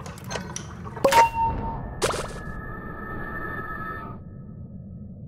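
A short bright chime rings out twice.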